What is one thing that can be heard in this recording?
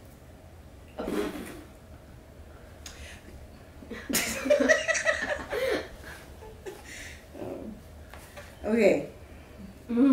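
A woman laughs softly, close by.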